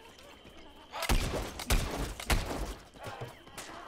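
A blaster fires fiery shots in quick bursts.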